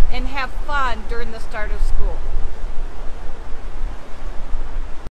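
A river rushes steadily in the distance.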